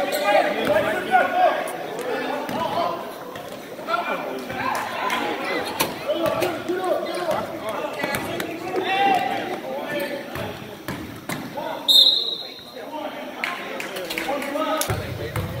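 A crowd of spectators talks and calls out in a large echoing gym.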